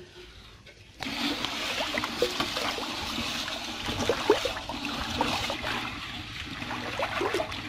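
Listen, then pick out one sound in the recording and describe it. A hand swishes and stirs through water.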